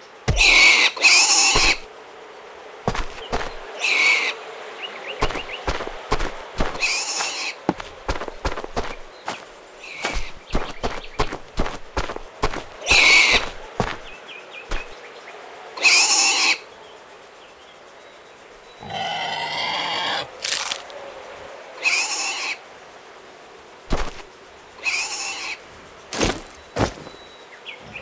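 A pig grunts and snorts in short bursts.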